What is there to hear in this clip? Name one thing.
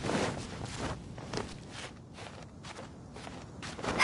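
Hands scrape and grip on stone while climbing.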